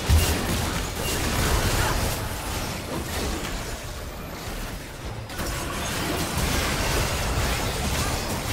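Video game spell effects whoosh and crackle during a busy fight.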